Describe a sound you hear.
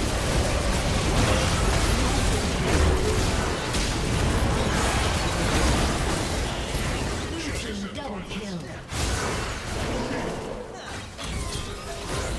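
Spells and weapon hits crash and boom in a busy fight.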